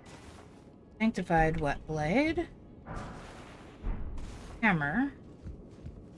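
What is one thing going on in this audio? A man talks with animation through a close microphone.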